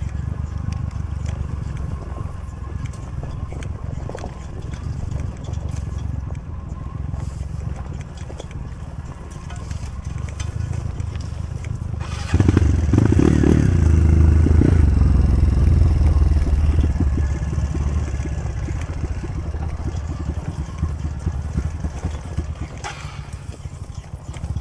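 A dirt bike engine rumbles steadily at low revs.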